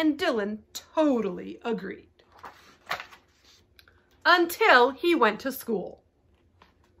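A young woman reads aloud expressively, close by.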